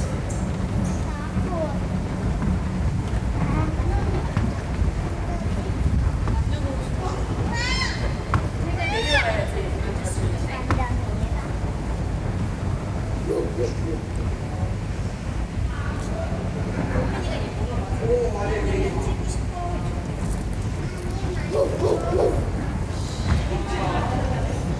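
Adults and children chatter and call out in a large echoing hall.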